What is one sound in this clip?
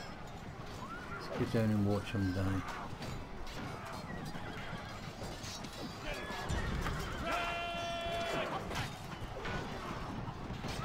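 A large crowd of soldiers shouts and clamours in battle.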